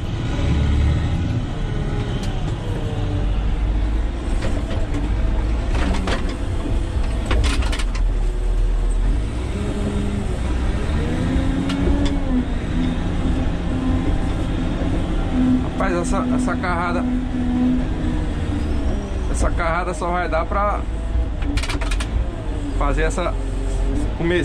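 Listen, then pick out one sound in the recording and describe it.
A heavy diesel engine rumbles steadily up close.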